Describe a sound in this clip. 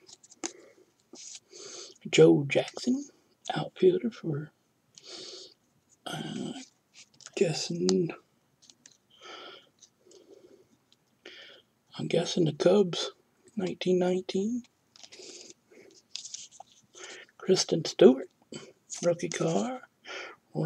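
Glossy trading cards slide and rustle against each other in hands.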